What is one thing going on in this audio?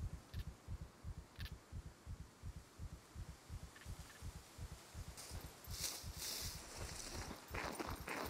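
Leaves and branches rustle as someone pushes through dense bushes.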